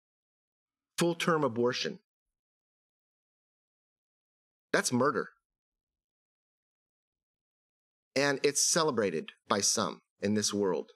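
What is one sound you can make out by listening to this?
A middle-aged man speaks with emphasis into a microphone in short bursts, with pauses.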